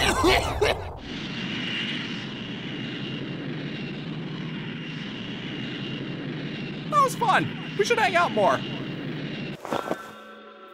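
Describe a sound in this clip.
Air rushes past in a steady roar.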